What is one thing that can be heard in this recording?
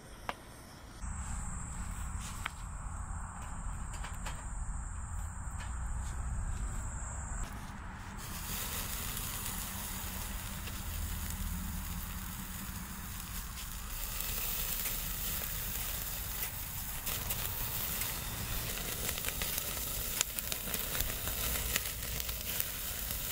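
Charcoal fire crackles and roars.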